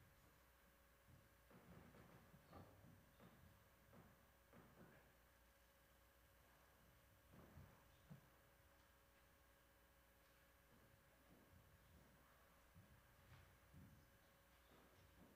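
A woman speaks softly nearby in a quiet room.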